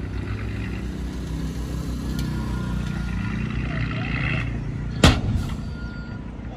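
Dirt pours and slides off a tipping truck bed.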